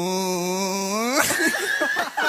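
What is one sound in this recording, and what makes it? A young man sings a long held note into a microphone.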